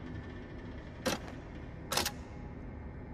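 A metal lever clicks as it is pulled.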